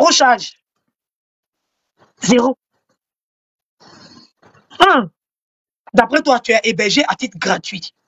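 A young woman speaks expressively, close to the microphone, in short bursts with pauses.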